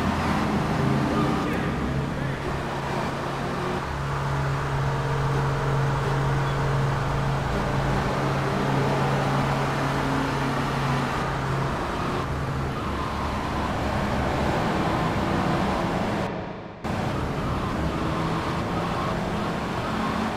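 A car engine drones at speed.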